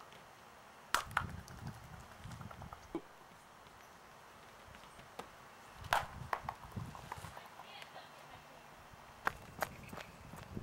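An orange thuds and bounces on pavement.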